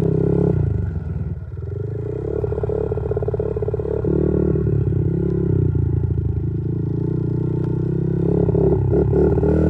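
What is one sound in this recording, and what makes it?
A small motorbike engine buzzes close by, revving up and down.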